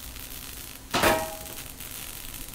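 A sharp metal clang rings out once.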